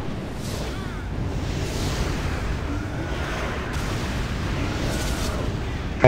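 Magic spells whoosh and crackle in a fierce battle.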